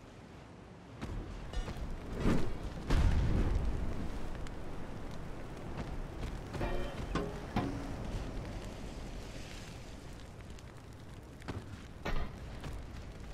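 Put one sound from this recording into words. Heavy naval guns fire in deep, booming blasts.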